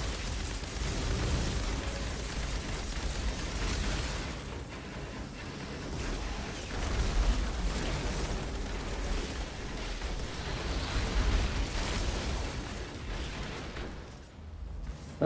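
Gunfire and explosions crackle and boom in a fast battle.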